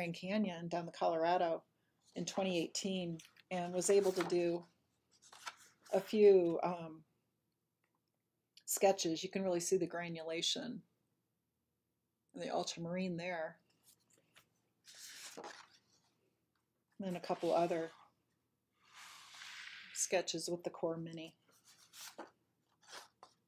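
Sketchbook pages rustle as they are turned and handled.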